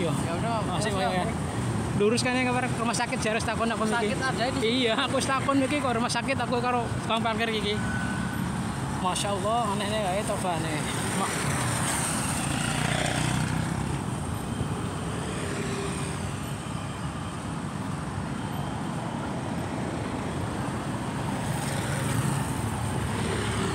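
Traffic rumbles steadily on a street outdoors.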